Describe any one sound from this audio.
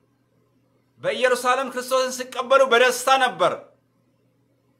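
A man speaks calmly, close up.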